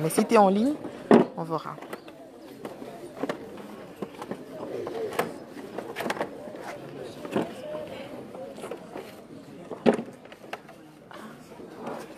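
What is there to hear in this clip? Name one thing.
A crowd of children chatters outdoors.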